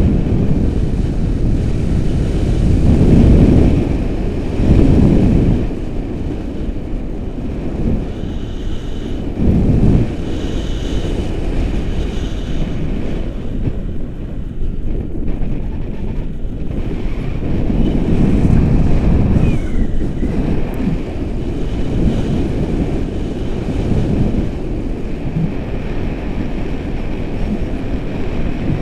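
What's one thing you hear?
Wind rushes and buffets against a microphone during a paraglider flight.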